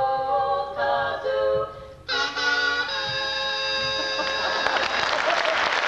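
A group of women sing together in harmony through microphones.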